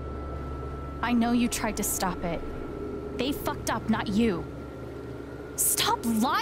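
A young woman speaks close by in a tense, accusing voice.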